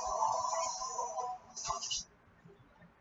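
A video game creature lets out an electronic cry.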